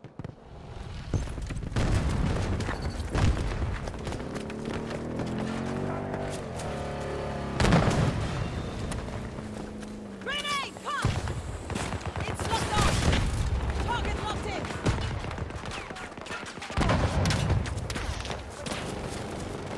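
Footsteps run over wet ground and gravel.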